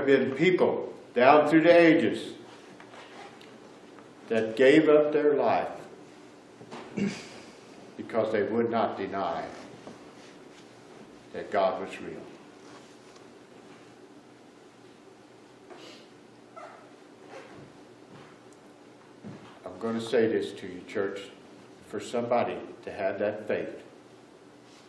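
A middle-aged man speaks with animation, with long pauses, in a room with a slight echo.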